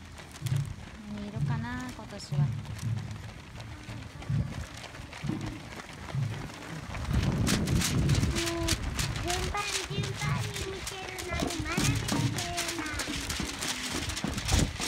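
Many runners' footsteps patter on pavement.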